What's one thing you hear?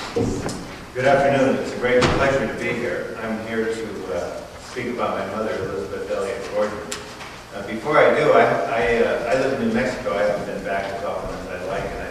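An elderly man speaks steadily into a microphone.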